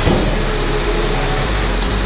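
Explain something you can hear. A suitcase's wheels roll over pavement.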